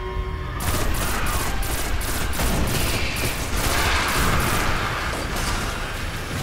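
A rifle fires a rapid string of loud shots.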